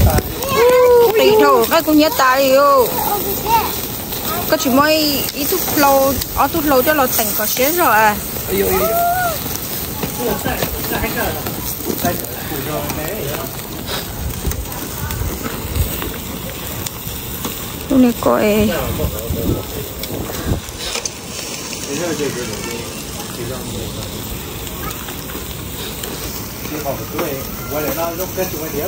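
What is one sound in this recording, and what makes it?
Meat sizzles on a grill.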